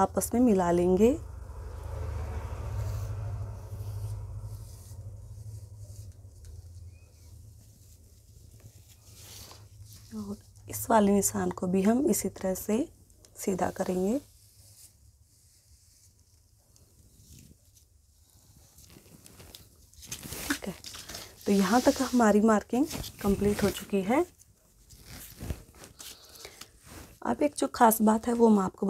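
Cloth rustles softly as hands smooth and handle it.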